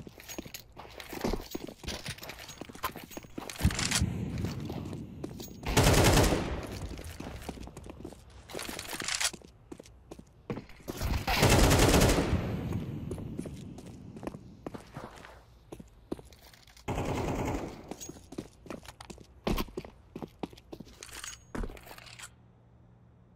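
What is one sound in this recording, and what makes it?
Footsteps patter on stone.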